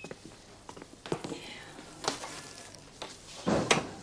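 A wooden door creaks and knocks shut.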